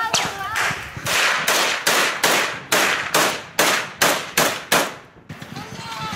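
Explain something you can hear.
A Kalashnikov-type assault rifle fires rapid shots close by.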